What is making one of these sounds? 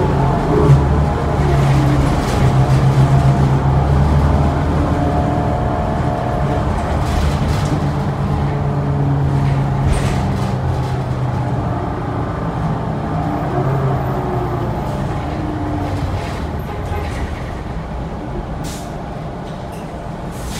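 A bus body rattles and clatters over the road.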